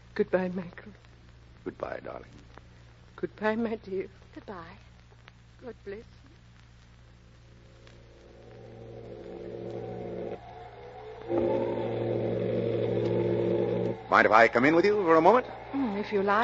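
A man speaks clearly into a microphone, heard through an old, muffled radio broadcast.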